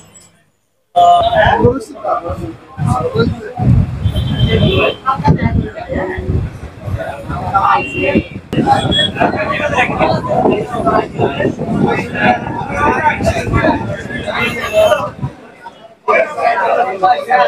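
A crowd of men chatter loudly nearby.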